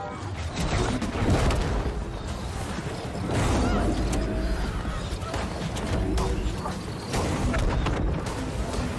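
Magic spells whoosh and crackle in a fierce fight.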